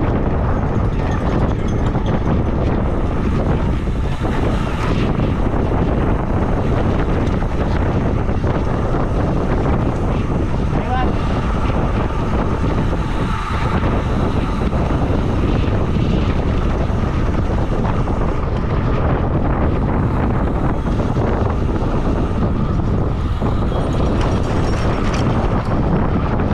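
Bicycle tyres hum on the pavement.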